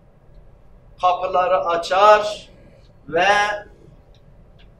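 An elderly man chants in a melodic voice through a microphone.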